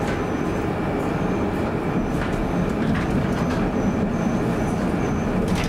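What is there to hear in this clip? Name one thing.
A van drives past on the street.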